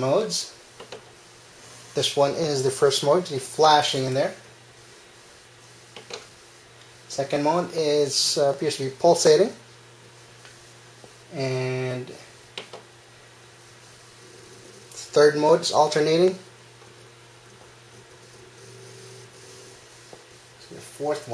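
Computer fans hum steadily.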